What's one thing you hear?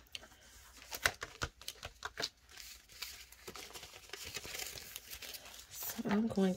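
Paper money rustles as it is handled.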